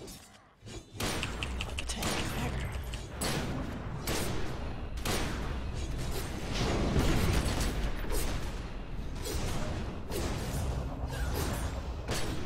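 Gunshots and fiery blasts crack and boom in rapid bursts.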